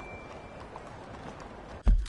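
Horse hooves clop slowly on cobblestones.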